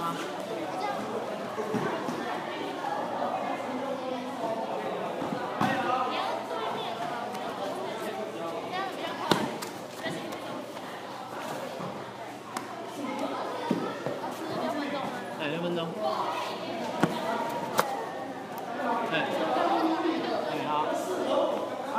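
Sneakers thud and squeak on a padded mat as young men run and jump.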